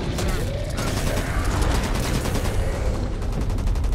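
An explosion bursts with a deep roar.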